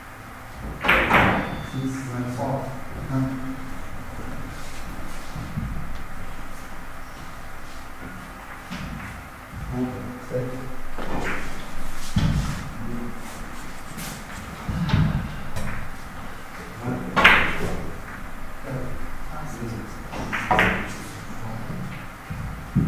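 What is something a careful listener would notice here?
Billiard balls knock together and roll across the table.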